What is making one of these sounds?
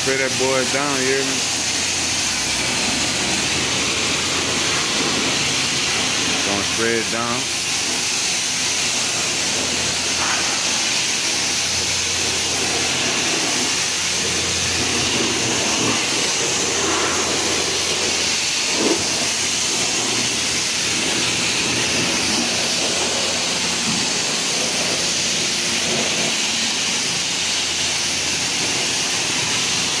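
Water spatters against a car's body and drips onto the ground.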